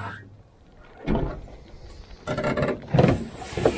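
A metal tool clanks on a truck bed liner.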